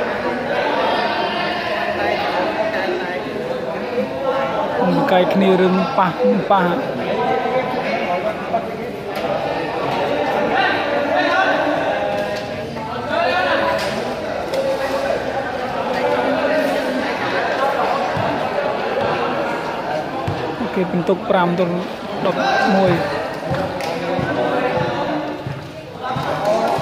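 A crowd of spectators chatters throughout in a large echoing hall.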